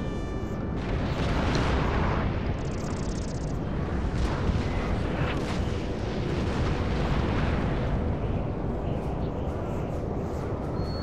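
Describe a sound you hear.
A low, steady rumble of battle fills the air.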